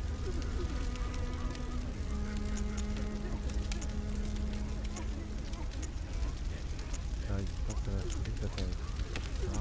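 Short menu clicks tick as a selection moves up and down a list.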